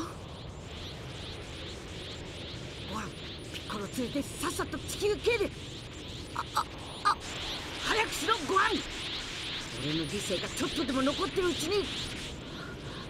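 A blazing energy aura hums and crackles steadily.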